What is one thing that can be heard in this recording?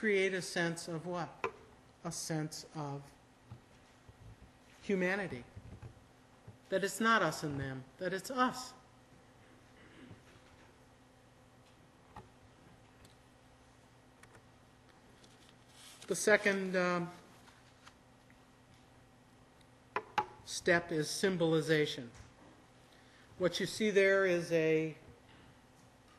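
A woman speaks slowly into a microphone, with long pauses.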